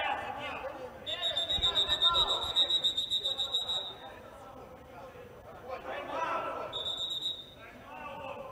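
A referee's whistle blows in long shrill blasts.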